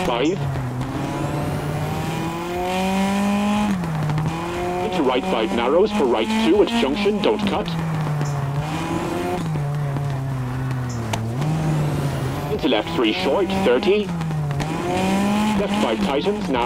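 A rally car engine revs hard, rising and falling as the car shifts gears.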